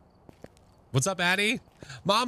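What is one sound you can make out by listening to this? A young man speaks loudly and with animation, close to a microphone.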